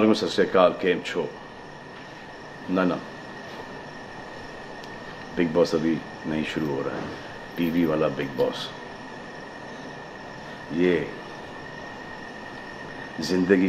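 A man speaks calmly and close up, with long pauses.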